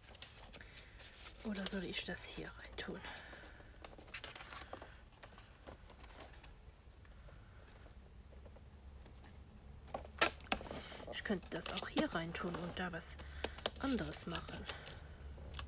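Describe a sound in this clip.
Fingers press and smooth a paper fold with a light scraping.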